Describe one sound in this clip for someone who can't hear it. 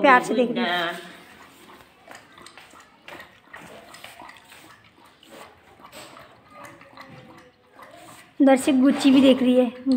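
A dog laps and chews food from a metal bowl.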